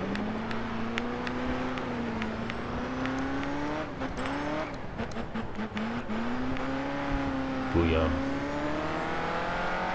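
A racing car engine roars steadily, its pitch dropping and rising as the car slows for a corner and speeds up again.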